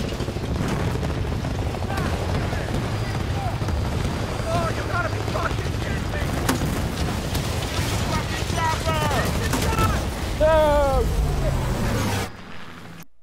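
A helicopter's rotor thumps overhead.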